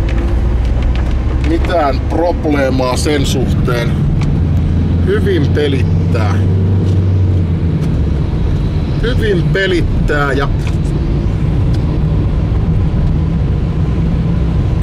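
A car engine hums low and steadily.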